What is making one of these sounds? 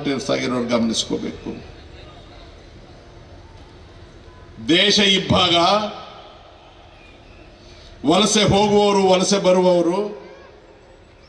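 An elderly man speaks forcefully in bursts through a loudspeaker.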